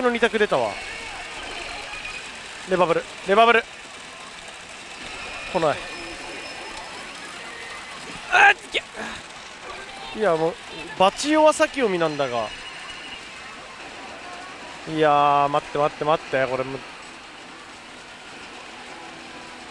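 A pachinko machine plays steady electronic sounds and music.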